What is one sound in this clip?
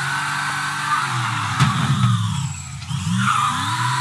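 Tyres screech on tarmac as a car spins.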